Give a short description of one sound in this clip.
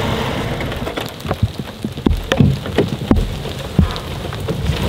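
A boot steps onto dry twigs that snap and crackle.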